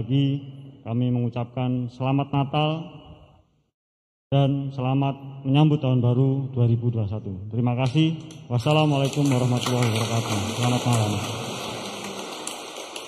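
A man speaks firmly through a microphone and loudspeaker in a large echoing hall.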